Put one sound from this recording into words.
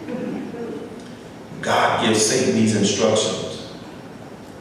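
A man speaks through a microphone in an echoing room.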